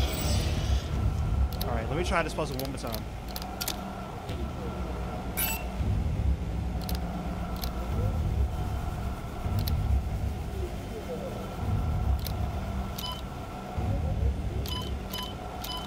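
Short electronic clicks and beeps sound from a terminal.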